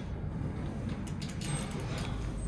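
A finger clicks a floor button inside an elevator.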